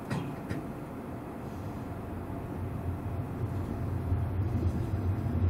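A train rumbles along the tracks, heard from inside a carriage, growing slightly louder.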